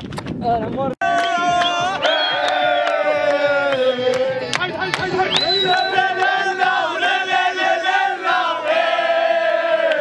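Young men clap their hands in rhythm.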